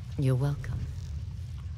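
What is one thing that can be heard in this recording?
A woman speaks calmly and briefly, close by.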